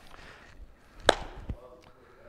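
A bean bag thuds onto a wooden board.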